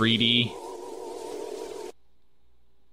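A shimmering magical chime swells and hums, then cuts off.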